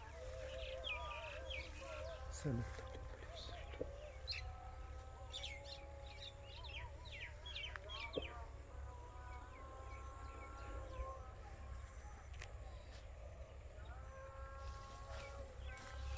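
Tall grass rustles and swishes as someone pushes through it.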